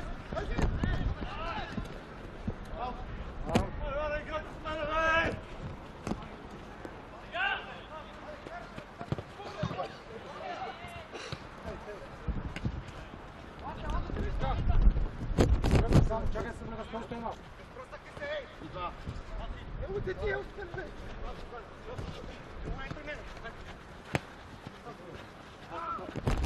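Men shout to each other outdoors.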